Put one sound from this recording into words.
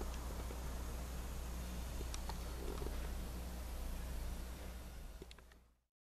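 Small bubbles tick and pop now and then.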